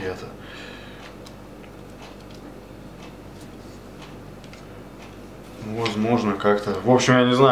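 Hard plastic clicks and taps softly as a knife sheath is handled.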